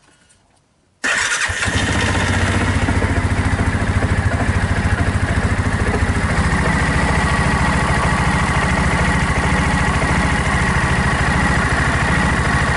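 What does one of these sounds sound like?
A small engine starts up and runs with a steady, rough idle close by.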